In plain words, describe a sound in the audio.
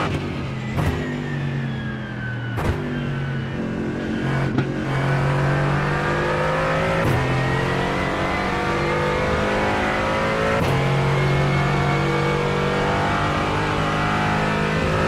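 A racing car engine roars and revs, dropping in pitch and then climbing again.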